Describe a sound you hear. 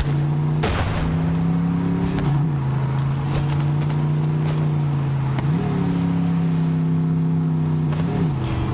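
A buggy's engine hums steadily, shifting pitch up and down as it drives.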